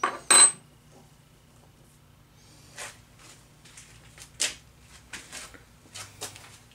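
Metal gears and parts clink as they are set down on a bench.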